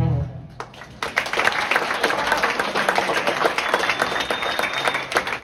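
An acoustic guitar strums rhythmically.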